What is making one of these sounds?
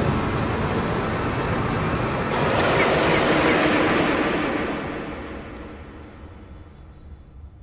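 A shimmering, rushing burst of magical sound swells and then fades away.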